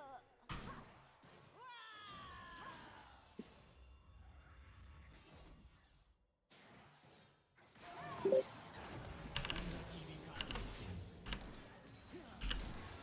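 Game sound effects of spells and hits clash and burst.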